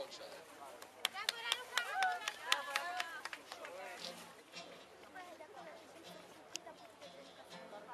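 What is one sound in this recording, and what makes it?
A young man strums an acoustic guitar.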